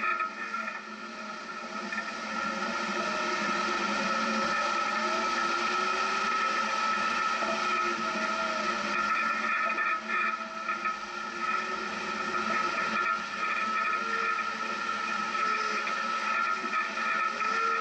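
An engine hums steadily as a vehicle drives slowly.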